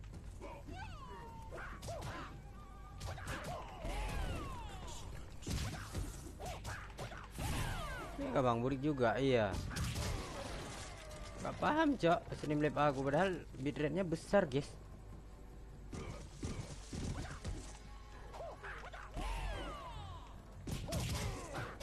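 Punches and kicks thud in a fast fight.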